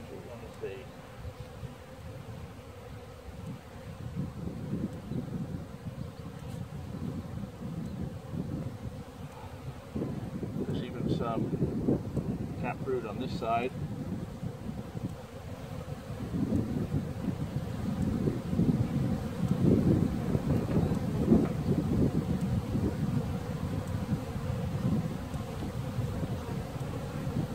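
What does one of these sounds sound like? Honeybees buzz around an open hive.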